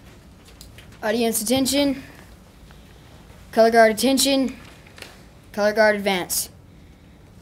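A boy speaks loudly and clearly into a microphone.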